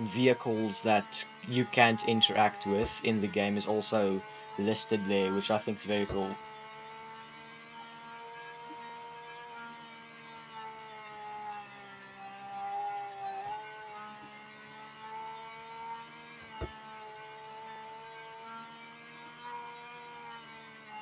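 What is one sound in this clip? A car engine drones steadily at speed.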